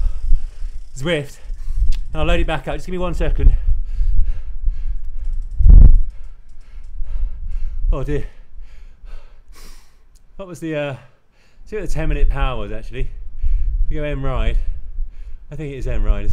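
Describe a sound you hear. A young man speaks breathlessly, close to the microphone.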